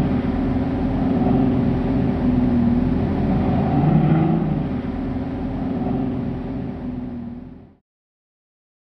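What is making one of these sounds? A car engine roars steadily.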